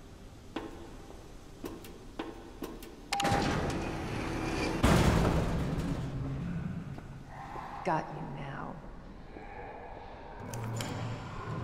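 A woman's high-heeled footsteps click on a hard floor.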